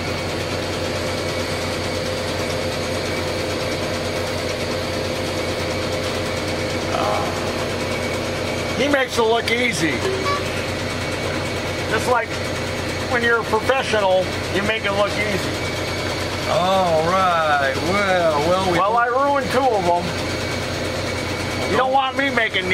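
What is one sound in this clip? A steady electrical hum drones throughout.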